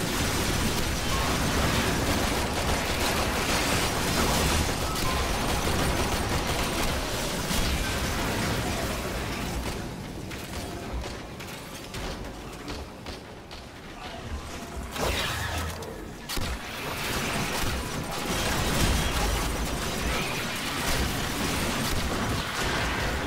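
Rapid gunfire and energy blasts crackle from a video game.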